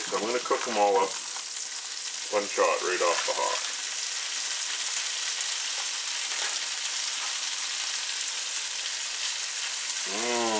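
Meatballs sizzle in hot oil in a pan.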